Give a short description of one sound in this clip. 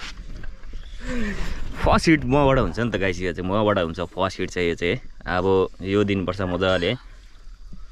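A man talks with animation close up.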